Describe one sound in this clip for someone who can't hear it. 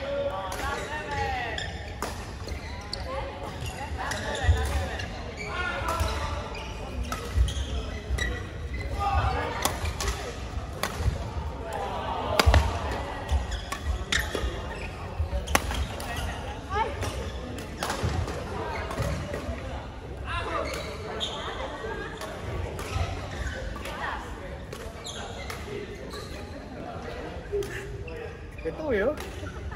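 Shuttlecocks pop off badminton rackets again and again in a large echoing hall.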